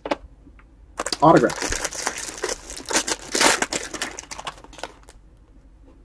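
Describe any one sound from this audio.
A foil wrapper crinkles and tears close by.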